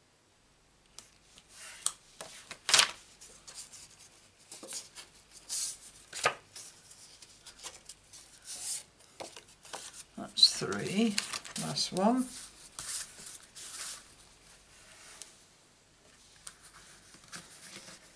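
Paper cards slide and rustle against a cutting mat.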